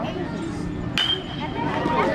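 A metal bat cracks against a ball.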